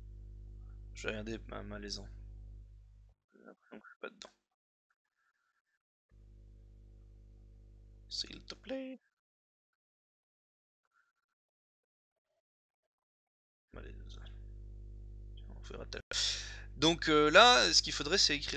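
A man speaks calmly into a headset microphone, close by.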